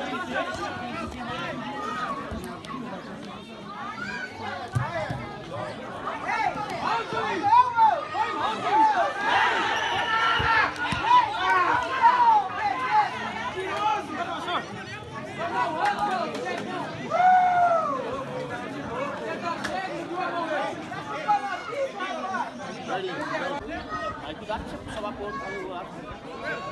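Men shout and call out across an open field outdoors.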